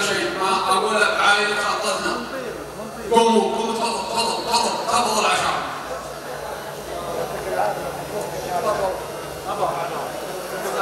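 A crowd murmurs in the background.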